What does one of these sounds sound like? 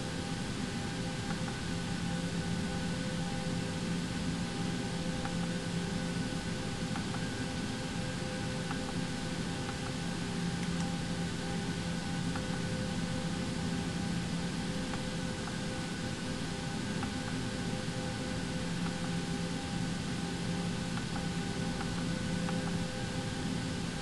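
Cockpit keypad buttons click softly now and then.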